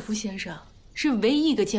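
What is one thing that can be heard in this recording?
A young woman speaks brightly.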